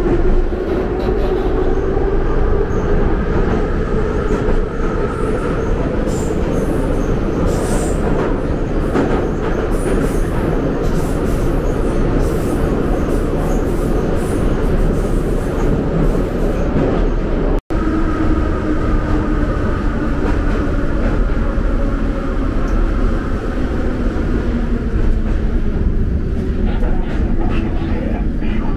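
A subway train rumbles and roars loudly along the tracks.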